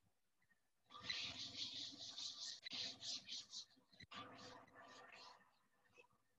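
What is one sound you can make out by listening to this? A cloth duster rubs back and forth across a chalkboard.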